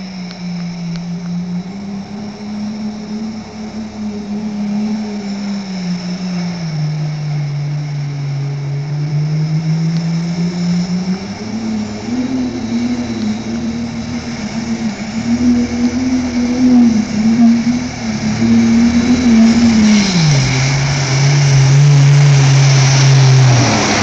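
A turbocharged four-cylinder pickup truck engine drones under load, rising and falling in pitch.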